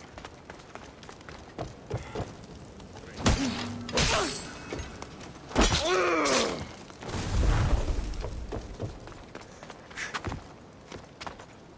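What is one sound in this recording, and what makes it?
Footsteps run across wooden planks.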